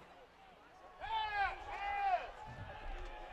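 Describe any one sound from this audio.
Young men shout on a field.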